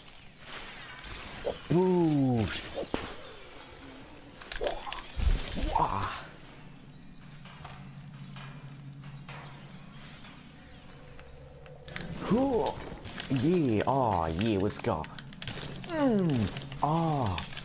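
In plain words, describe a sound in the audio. A bat smashes into a body with a sharp shattering crack.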